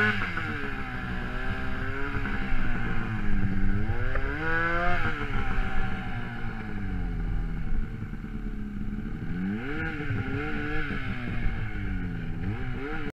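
A snowmobile engine roars close by, revving up and down.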